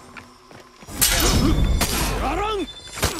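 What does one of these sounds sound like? Swords clash and ring in a game fight.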